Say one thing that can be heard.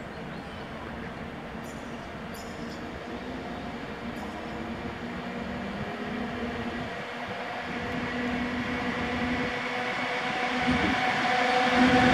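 A freight train approaches along the track, its rumble growing steadily louder.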